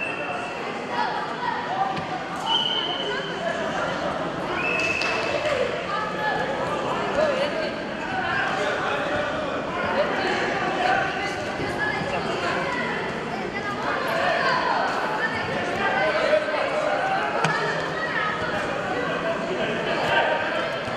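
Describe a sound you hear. A crowd of spectators chatters and shouts in an echoing hall.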